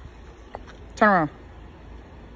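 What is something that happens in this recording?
A puppy whimpers close by.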